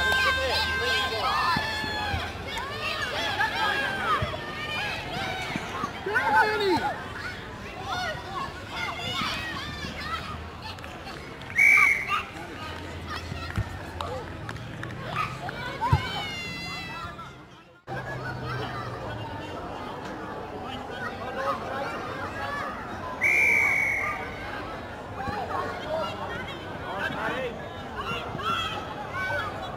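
Adult spectators cheer and call out nearby.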